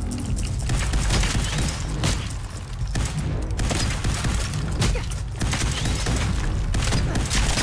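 Gunshots fire rapidly and loudly.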